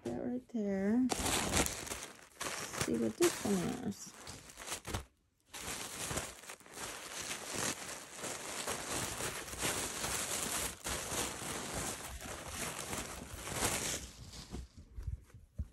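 Tissue paper crinkles and rustles close by.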